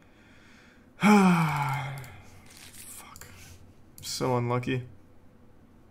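A young man exclaims loudly and with animation, close to a microphone.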